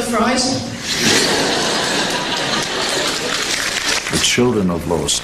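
A crowd of children laughs loudly in a large hall.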